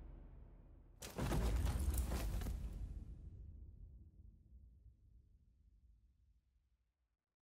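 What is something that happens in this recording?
A second explosion blasts and slowly fades.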